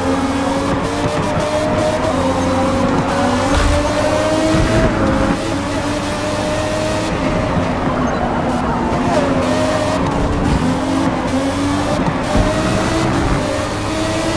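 A racing car engine whines loudly, its pitch rising and falling with gear changes.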